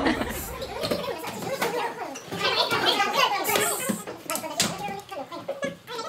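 Teenagers talk and laugh together in a lively group.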